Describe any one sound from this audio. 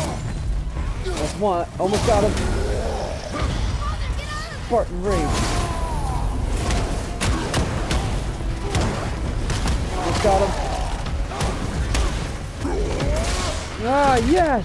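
A huge creature roars and growls loudly.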